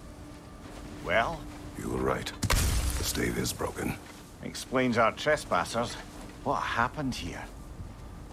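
A man speaks in a deep, low voice.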